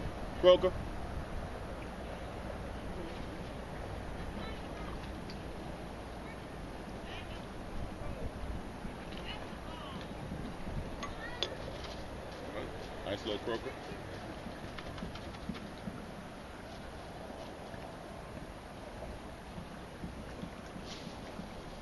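Water laps gently along a shore outdoors.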